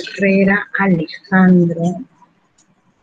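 A young woman speaks calmly and closely into a microphone over an online call.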